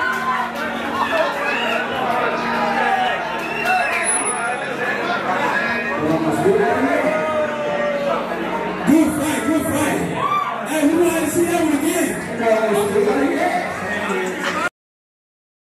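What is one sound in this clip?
A crowd of men talks and shouts loudly in an echoing room.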